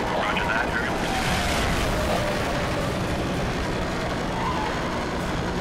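A race car engine roars at high revs.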